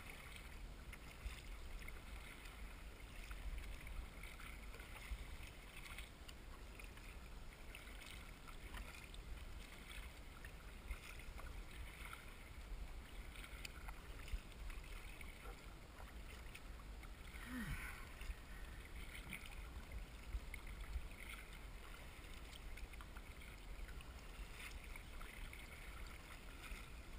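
Small waves slap and splash against a kayak hull.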